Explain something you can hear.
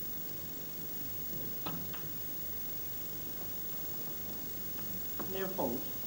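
A cue taps a snooker ball.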